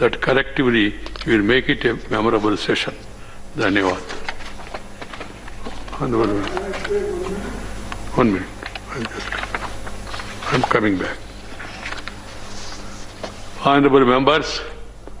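An elderly man speaks firmly into a microphone in a large echoing hall.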